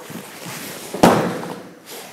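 A body thuds onto a padded mat.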